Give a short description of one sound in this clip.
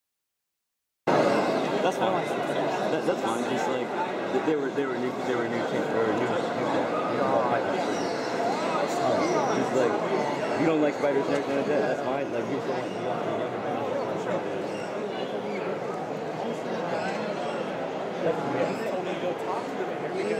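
A crowd of people chatters all around in a large, busy hall.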